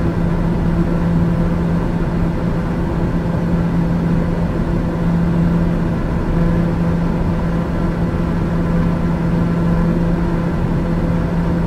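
An aircraft engine drones steadily inside a cockpit.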